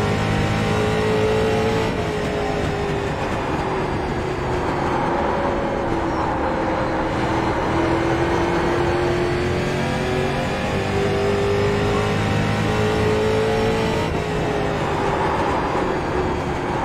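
A race car engine roars steadily, its pitch rising and falling with the throttle.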